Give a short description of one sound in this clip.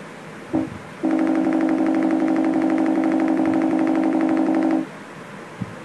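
A laptop sounds a loud, steady buzzing tone.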